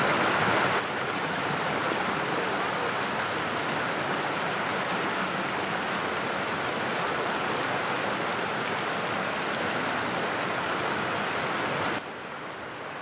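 Water rushes and splashes over rocks close by.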